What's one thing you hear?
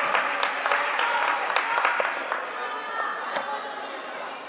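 Sticks clack against a plastic ball in a large echoing hall.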